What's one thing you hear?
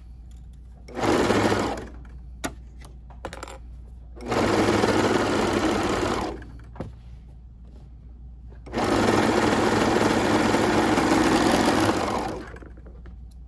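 A serger machine runs in short bursts, stitching rapidly.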